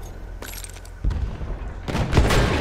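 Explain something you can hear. An explosion booms in the distance.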